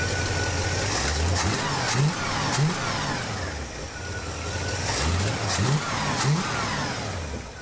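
A car engine revs up sharply and drops back, several times.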